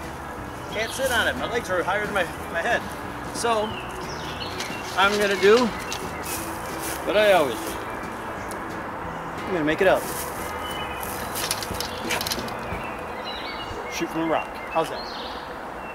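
A man talks calmly and close by, outdoors.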